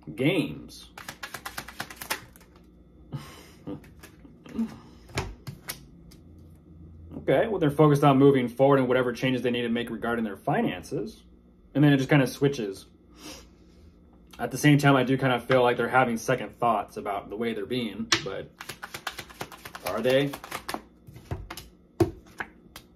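Playing cards riffle and snap in a young man's hands.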